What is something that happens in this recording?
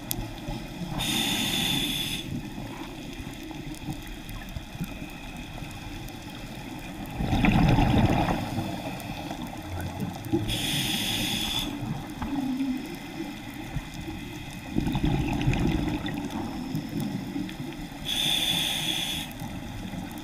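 A diver's breath hisses through a regulator, in short bursts.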